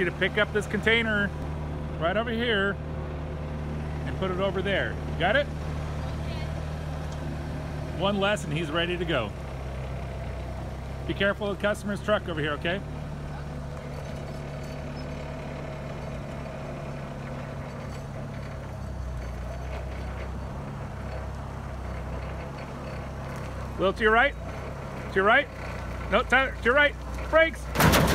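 A forklift engine hums steadily as the forklift drives about.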